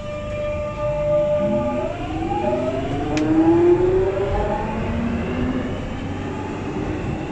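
A train rumbles low along the track.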